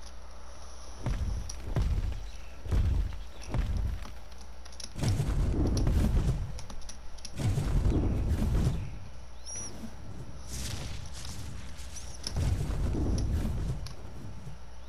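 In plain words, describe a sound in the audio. Huge creature footsteps thud heavily and deeply at intervals.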